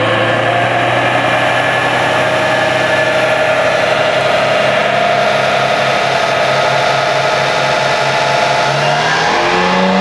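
A car engine idles loudly.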